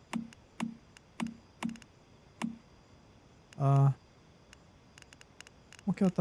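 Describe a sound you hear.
Short interface clicks tick in quick succession.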